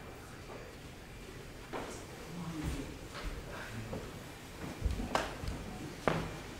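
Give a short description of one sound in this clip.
Cloth robes rustle close by.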